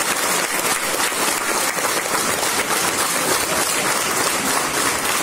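A crowd applauds steadily in a large hall.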